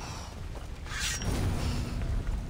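Flames burst with a sudden whoosh.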